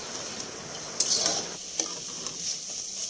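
A metal spatula scrapes and clanks against a pan.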